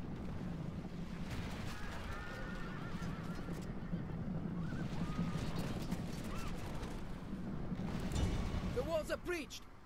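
Horses' hooves thunder as cavalry charges.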